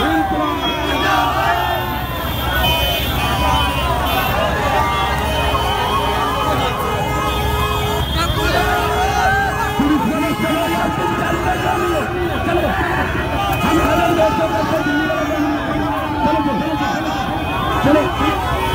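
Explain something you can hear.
A large crowd of men cheers and shouts loudly outdoors.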